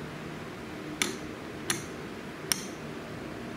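A metal latch handle clicks and rattles.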